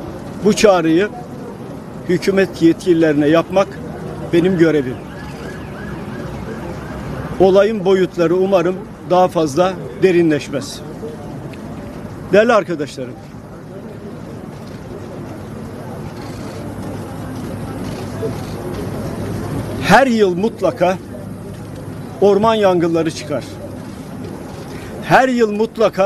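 An elderly man speaks forcefully into microphones outdoors, pausing between phrases.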